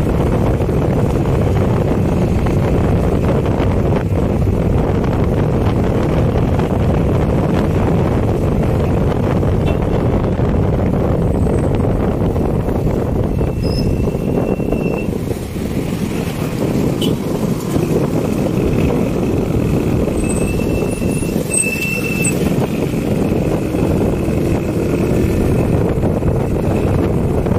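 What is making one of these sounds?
Car tyres rumble steadily on a road.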